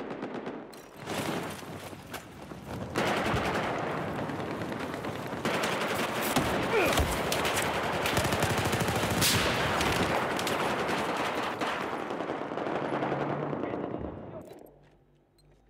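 Rifle fire rattles in bursts.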